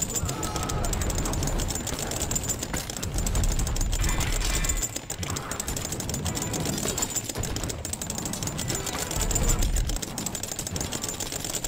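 Many small impacts clatter and thud in a chaotic battle.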